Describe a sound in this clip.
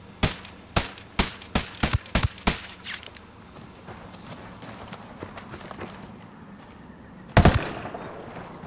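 Rifle shots fire in quick succession, then one more loud shot.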